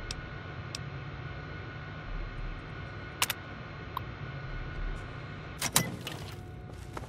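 A computer terminal hums steadily.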